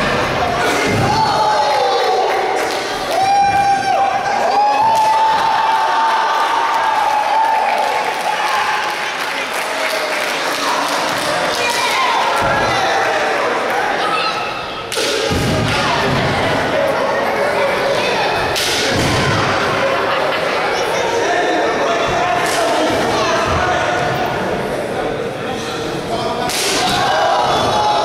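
A crowd in an echoing hall shouts and cheers.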